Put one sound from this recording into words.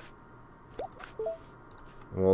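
A short electronic chime sounds as a game menu opens.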